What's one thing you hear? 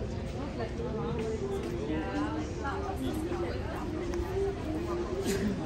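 A crowd of men and women chatters at tables nearby.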